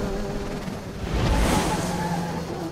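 Tyres skid on a road.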